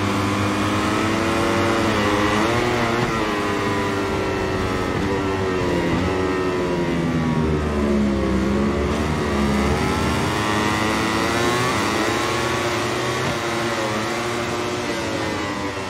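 A racing motorcycle engine screams at high revs, rising and falling as the gears shift.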